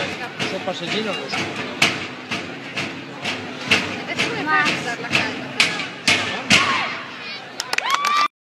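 Drummers beat drums in a loud rhythmic pattern outdoors.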